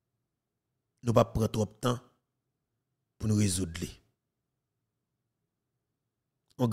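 A man speaks calmly and close into a microphone, in short bursts.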